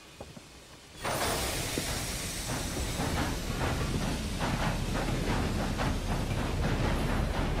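A train rumbles and hisses steadily.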